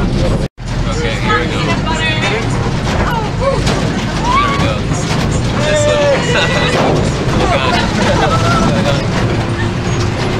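A young man with a beard speaks cheerfully close by.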